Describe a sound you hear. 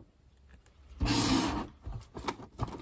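Paper rustles as a woman handles a cutout.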